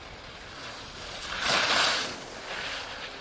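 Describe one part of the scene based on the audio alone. Skis hiss and scrape on snow as a skier carves past close by.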